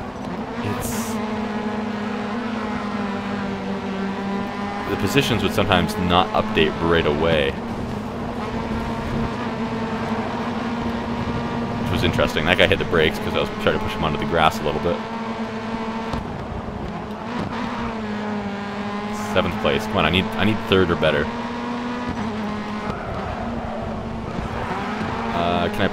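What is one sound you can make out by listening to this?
A racing car's engine roars steadily at high revs.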